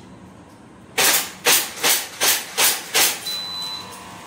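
Pistol shots fire in a quick burst, ringing in an echoing indoor range.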